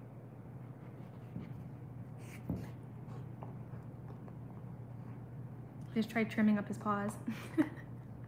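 A dog gnaws on a bone.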